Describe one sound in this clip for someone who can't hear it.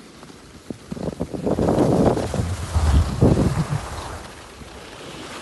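Wind rushes past outdoors, loud and gusty.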